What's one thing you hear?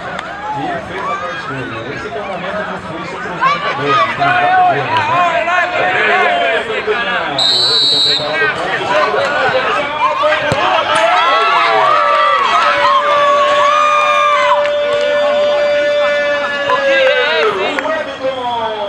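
A crowd of people shouts and cheers outdoors.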